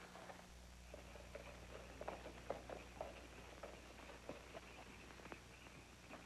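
Horses' hooves clop on the ground.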